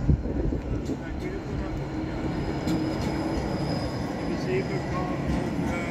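A tram rolls past close by with a low rumble and a faint electric hum.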